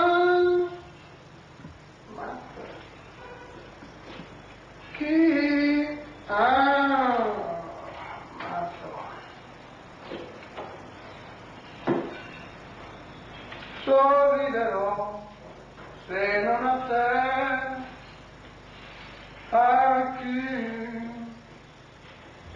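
A man speaks slowly in short bursts, heard through a recording.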